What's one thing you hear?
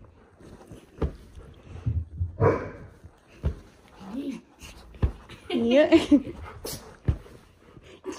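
Paws thump on a soft mattress.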